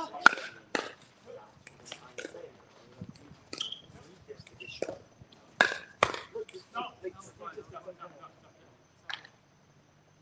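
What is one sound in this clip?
Paddles pop sharply against a plastic ball in a quick rally.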